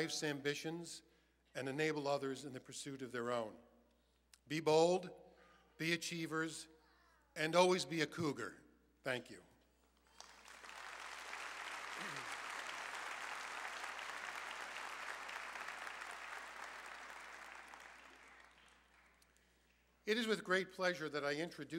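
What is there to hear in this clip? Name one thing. A man speaks calmly into a microphone, heard over loudspeakers in a large echoing hall.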